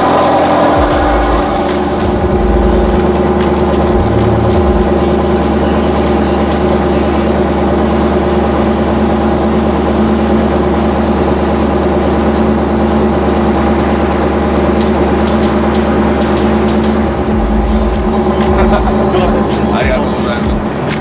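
A sports car engine idles with a deep, steady rumble.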